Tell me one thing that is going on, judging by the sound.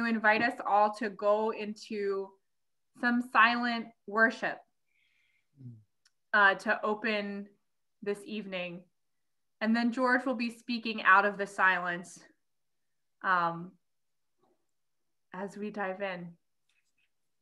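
A middle-aged woman speaks calmly over an online call, pausing between phrases.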